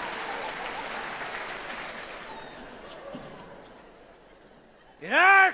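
A large audience applauds and the applause fades away.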